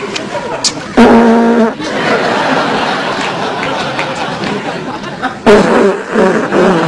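An elderly man blows his nose loudly into a tissue.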